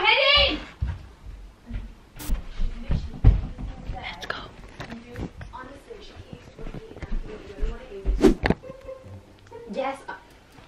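Footsteps thump on the floor up close.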